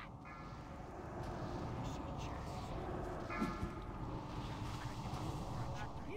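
Game spell effects crackle and hum during a battle.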